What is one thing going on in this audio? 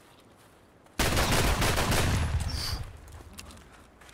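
A shotgun fires once with a loud, echoing blast.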